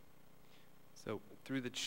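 A woman begins speaking into a microphone.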